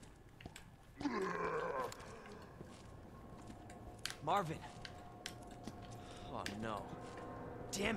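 A zombie groans and moans hoarsely.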